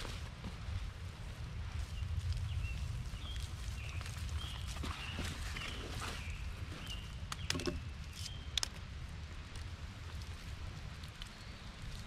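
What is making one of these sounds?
Moss is torn and pulled loose with soft ripping sounds.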